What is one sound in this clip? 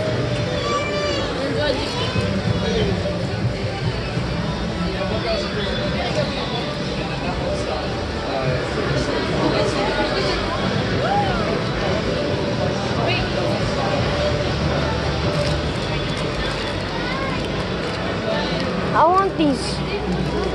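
Many voices of men, women and children chatter nearby throughout.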